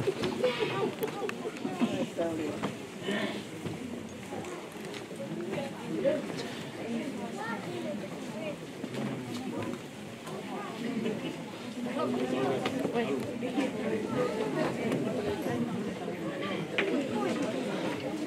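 A crowd of men and women murmur and talk at once, indoors.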